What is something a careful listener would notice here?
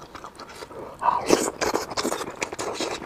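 A man slurps food close to a clip-on microphone.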